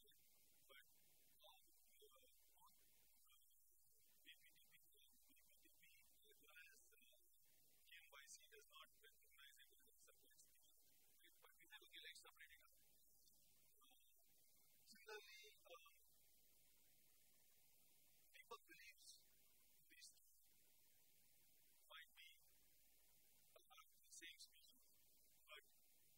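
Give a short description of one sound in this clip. A man lectures calmly, heard faintly through a distant microphone.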